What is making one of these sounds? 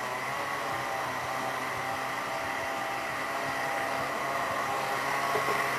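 A blender motor whirs steadily.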